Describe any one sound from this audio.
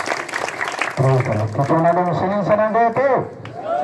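An elderly man speaks loudly to a crowd.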